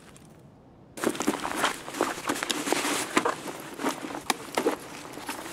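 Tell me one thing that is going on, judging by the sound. Clothing and gear rustle as a body is searched.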